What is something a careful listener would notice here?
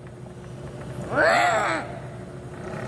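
A small boy shouts loudly.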